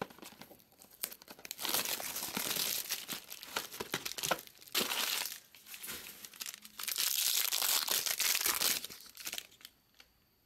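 Plastic wrapping crinkles and tears as hands open a pack of cards.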